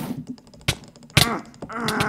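Sharp hits of a sword strike in quick bursts.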